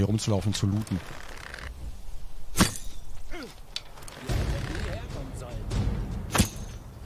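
A bowstring creaks as an arrow is drawn back.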